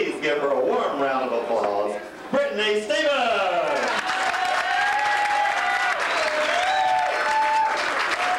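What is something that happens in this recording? A performer sings loudly through a microphone.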